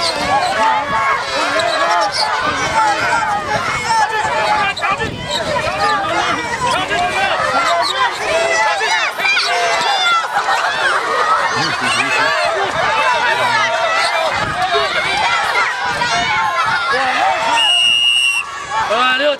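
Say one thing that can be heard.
Children laugh excitedly.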